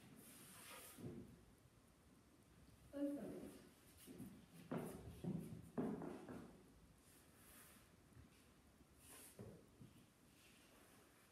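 Shoes shuffle and pivot softly on a wooden floor.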